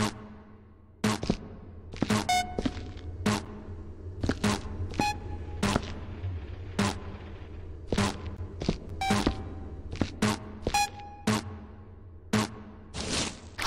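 Footsteps tap steadily across a hard floor.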